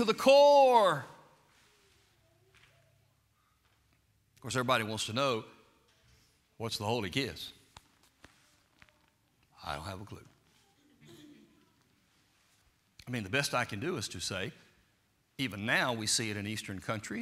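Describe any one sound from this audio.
An elderly man preaches with animation through a microphone, with pauses between phrases.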